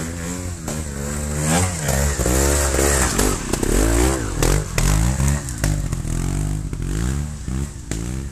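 Tyres crunch and slip on dirt and rocks.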